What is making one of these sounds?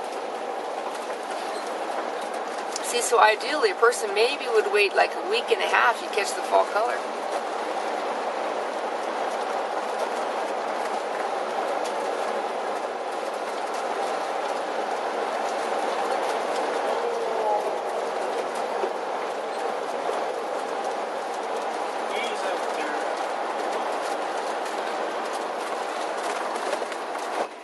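A vehicle's engine hums steadily as it drives along a winding road.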